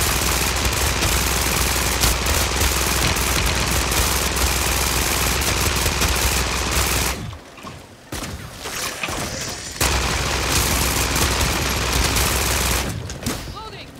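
A gun fires in rapid, continuous bursts.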